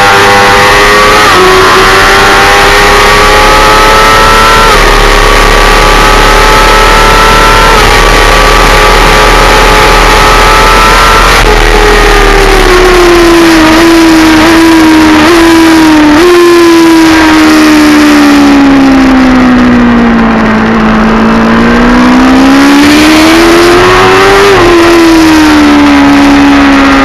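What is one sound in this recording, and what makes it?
A motorcycle engine roars loudly at high revs, shifting up through the gears and then dropping and rising in pitch through a bend.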